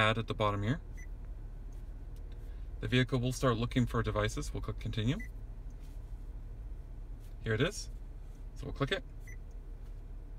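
A car touchscreen beeps softly.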